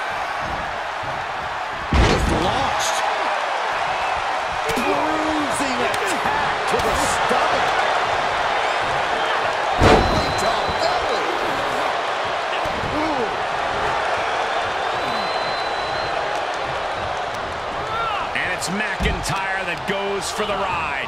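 An arena crowd roars and cheers.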